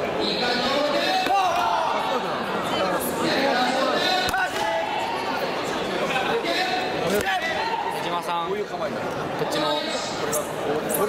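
A crowd of young people chatters and calls out throughout a large echoing hall.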